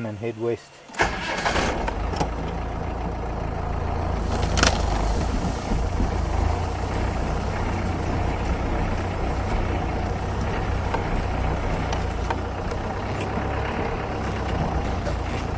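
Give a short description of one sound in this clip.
A vehicle engine rumbles as the vehicle drives over rough ground.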